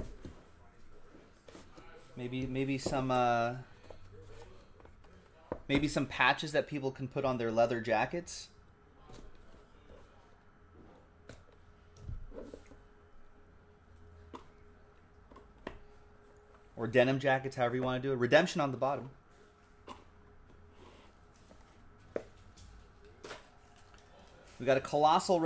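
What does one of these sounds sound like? Cardboard boxes slide and tap together.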